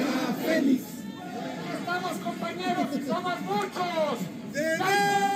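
Men and women talk and call out in a crowd nearby.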